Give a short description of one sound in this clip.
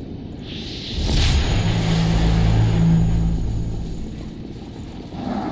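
A magical burst whooshes and hums loudly, then fades.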